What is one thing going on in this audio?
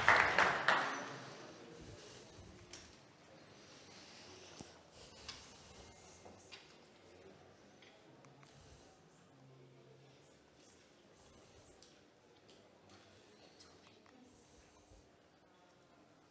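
A man speaks calmly to an audience in a large, echoing room.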